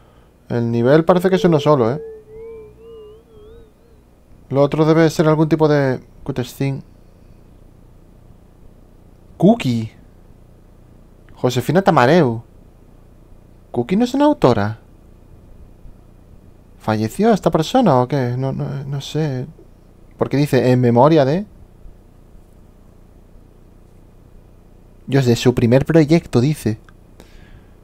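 A man speaks slowly in short phrases through a headset microphone.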